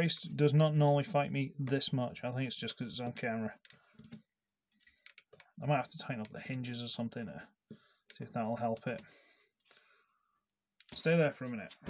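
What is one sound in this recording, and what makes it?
Plastic toy parts click as they are twisted by hand.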